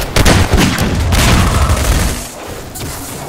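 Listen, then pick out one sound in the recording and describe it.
An explosion booms and roars loudly.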